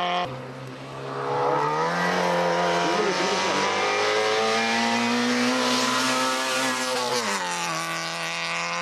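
A second rally car's engine revs up through the gears and roars past close by.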